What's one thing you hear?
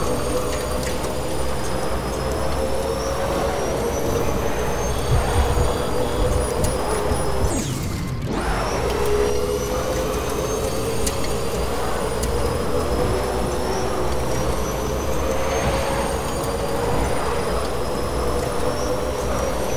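A vehicle's engine hums steadily as it drives along a road.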